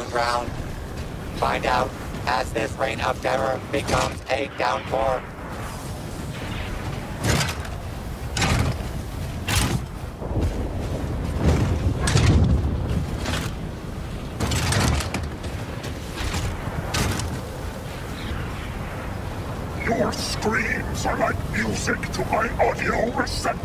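Metal footsteps clank across a hard floor.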